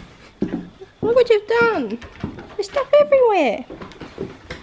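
A dog whines and yelps in short high cries.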